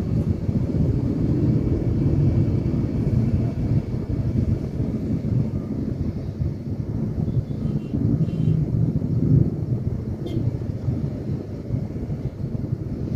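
A motorcycle engine rumbles steadily close by in slow traffic.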